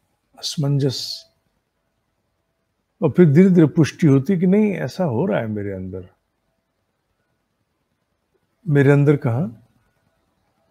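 A middle-aged man speaks calmly and clearly into a close microphone, with pauses.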